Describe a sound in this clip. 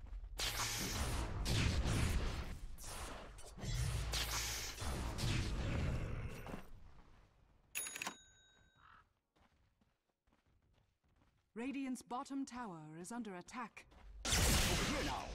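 A magic blast whooshes and roars in bursts.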